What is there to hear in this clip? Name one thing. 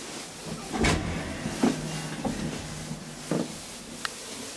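A lift hums softly as it moves.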